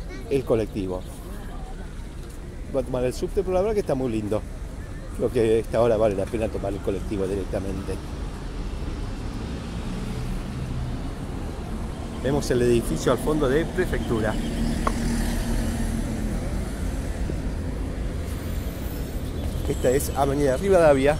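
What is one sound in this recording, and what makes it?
Traffic rumbles steadily in the distance.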